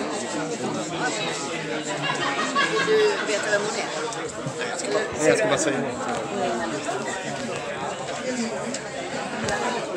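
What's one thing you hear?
A crowd of men and women chatters and murmurs in a large echoing hall.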